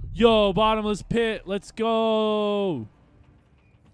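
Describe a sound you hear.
A young man sings loudly in drawn-out notes close to a microphone.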